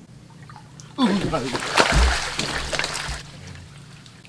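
A bare foot kicks and splashes in shallow water.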